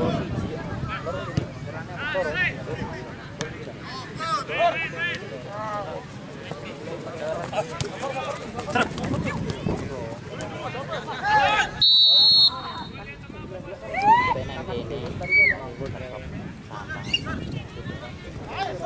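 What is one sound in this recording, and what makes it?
Young men on a field call out to each other.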